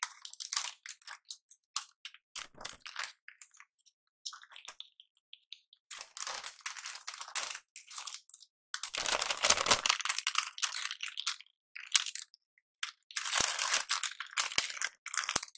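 Paper crinkles and rustles close to a microphone.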